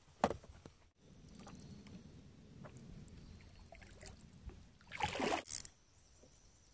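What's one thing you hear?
A kayak paddle splashes and dips in calm water.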